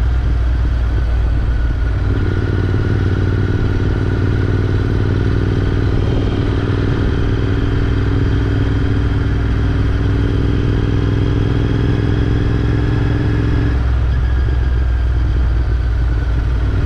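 A motorcycle engine rumbles steadily close by as it rides along.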